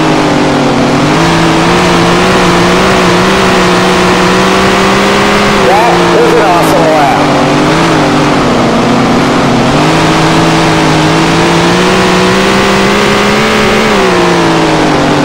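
A race car engine roars steadily, rising and falling in pitch as it speeds up and slows down.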